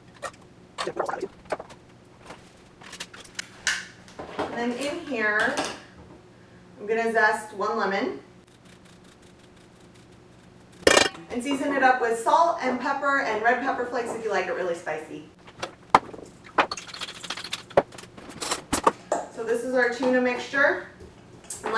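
A young woman talks calmly and clearly, close by.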